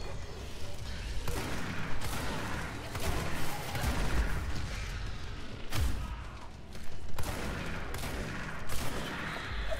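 Gunfire bangs in sharp bursts.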